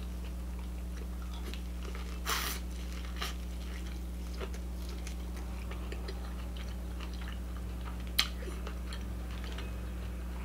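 A young woman chews and bites into food close to a microphone.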